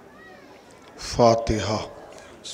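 A man speaks loudly into a microphone over a loudspeaker.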